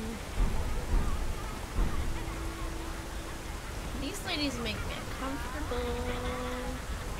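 A young woman speaks through a headset microphone.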